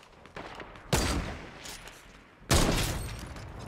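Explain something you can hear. Two loud gunshots bang.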